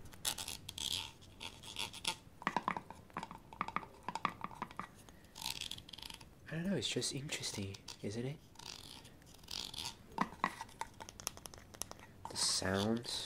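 Fingers tap and crinkle a small object close to a microphone.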